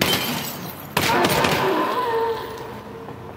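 Glass shatters and tinkles.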